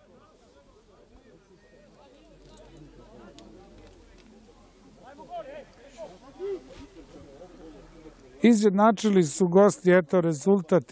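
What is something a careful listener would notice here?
Young men shout to each other far off across an open field.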